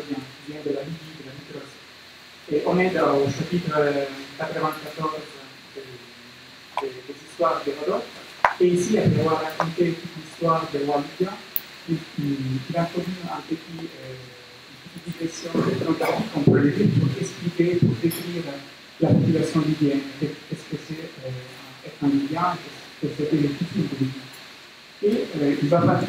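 A young man speaks calmly into a microphone, heard through a loudspeaker in a room.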